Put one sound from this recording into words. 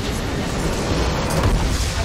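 A large structure explodes with a deep boom.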